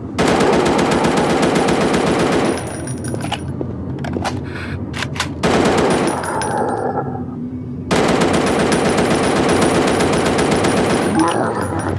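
An automatic rifle fires in long, rapid bursts.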